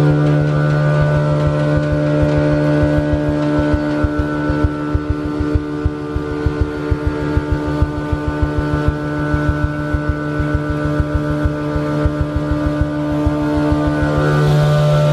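Loose material rattles through the machine.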